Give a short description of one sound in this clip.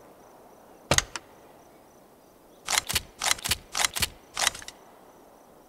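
Metal objects clatter and click as they are picked up.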